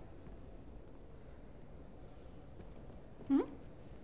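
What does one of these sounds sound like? Footsteps tap slowly on a stone floor.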